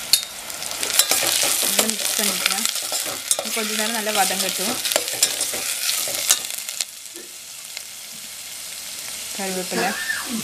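A metal spoon scrapes and stirs inside a pot.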